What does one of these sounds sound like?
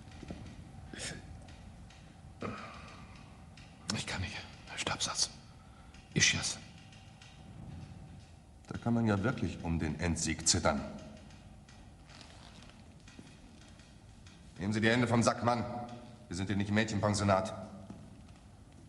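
A man speaks in a low, tense voice nearby.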